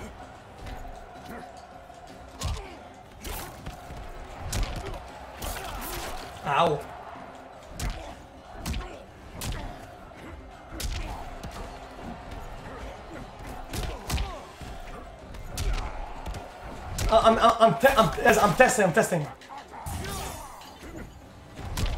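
Heavy punches and blows land with sharp thuds.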